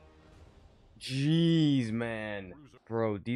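A short, bright musical fanfare plays.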